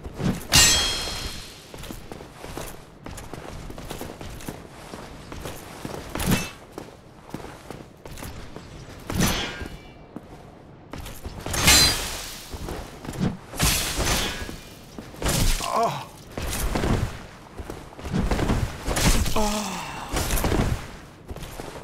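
Metal weapons clash and ring in sharp blows.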